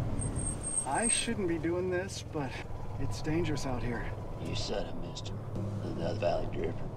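An elderly man speaks from inside a car.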